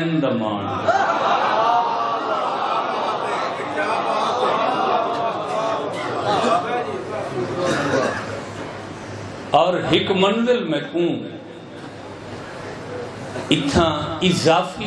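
A middle-aged man speaks with passion through a microphone and loudspeakers.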